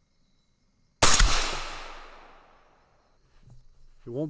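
A rifle fires a single loud shot that echoes and slowly fades outdoors.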